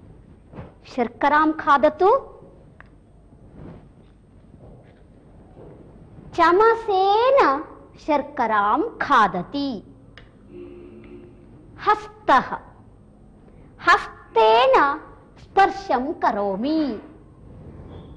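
A woman speaks clearly and with animation.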